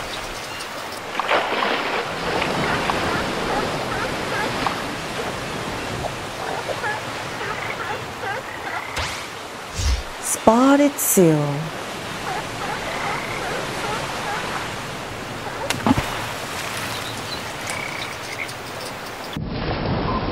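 Small waves splash on open water.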